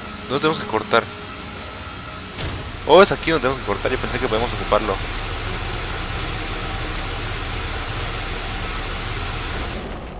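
A fiery beam hisses and crackles steadily.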